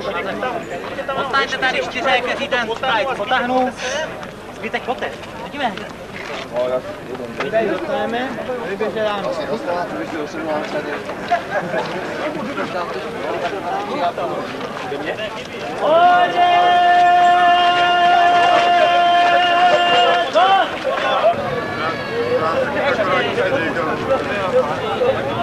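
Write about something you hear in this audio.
A crowd of men and women talks and calls out all around, outdoors.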